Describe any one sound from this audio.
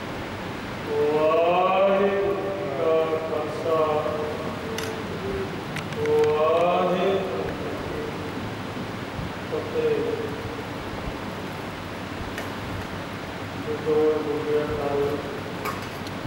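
A man sings a slow chant into a microphone.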